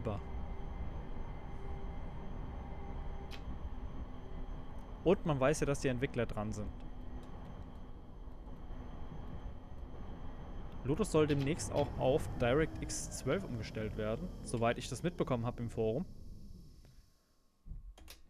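A tram rolls along on rails.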